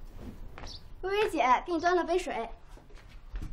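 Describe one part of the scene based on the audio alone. A young girl speaks brightly and cheerfully, close by.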